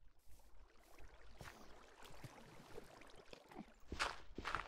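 Water flows and splashes.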